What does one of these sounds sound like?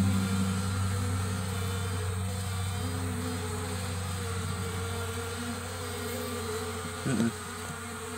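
Bees buzz softly close by.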